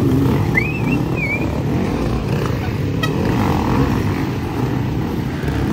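Dirt bike engines rev loudly and sputter up a rocky slope.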